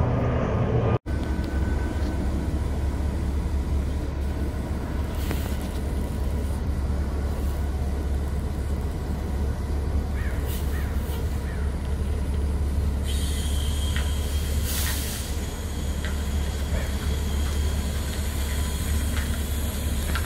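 A bus engine idles nearby with a steady low rumble.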